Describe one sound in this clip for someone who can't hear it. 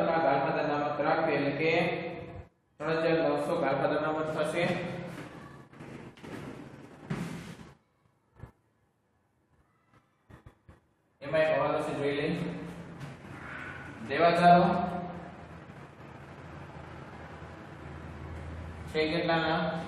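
A man speaks calmly and clearly close by.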